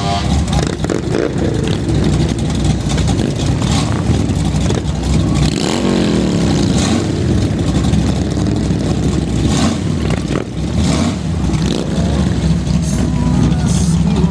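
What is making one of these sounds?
Motorcycle engines idle and rumble close by.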